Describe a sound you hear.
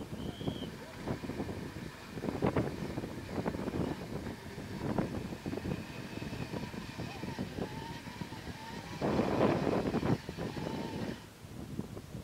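A winch motor whines steadily as it pulls a cable.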